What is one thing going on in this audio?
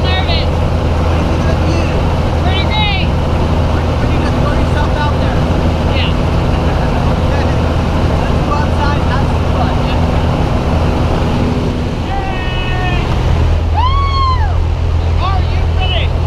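A young woman laughs and talks excitedly nearby.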